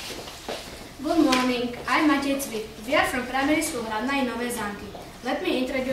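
A group of children sings together in a room.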